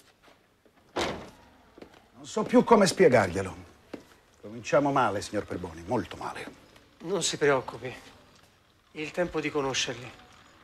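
A man with a deeper voice answers calmly.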